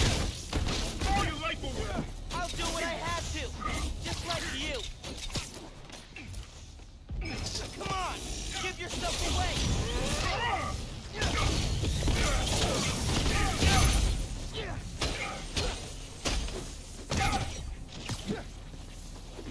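Punches and blasts thud and crackle in a fight.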